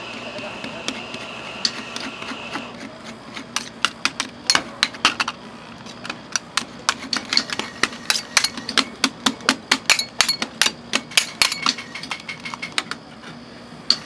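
Metal spatulas scrape and tap rapidly on a cold metal plate.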